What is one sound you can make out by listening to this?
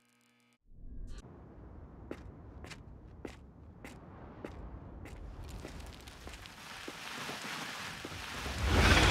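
Boots thud on a stone floor in slow, even footsteps.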